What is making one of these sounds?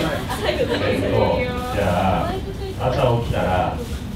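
A young man speaks loudly to a group.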